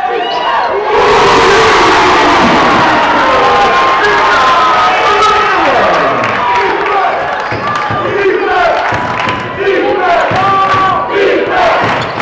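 A crowd in an echoing gym cheers and roars loudly.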